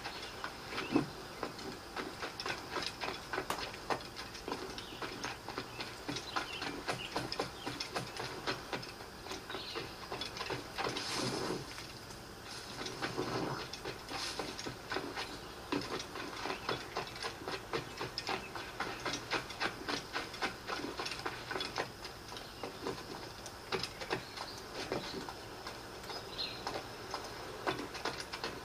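Quick footsteps run over the ground.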